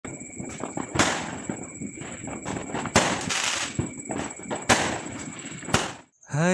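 Fireworks crackle and fizzle after each burst.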